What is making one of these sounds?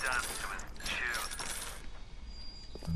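An electric bolt crackles and buzzes.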